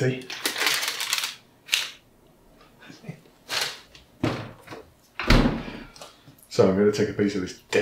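Plastic packaging crinkles in a man's hands.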